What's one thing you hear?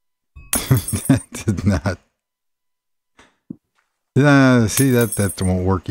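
A block breaks with a short crunching pop.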